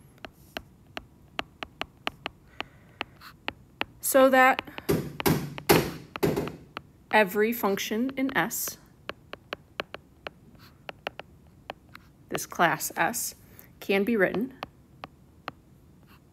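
A stylus taps and scratches on a tablet while writing.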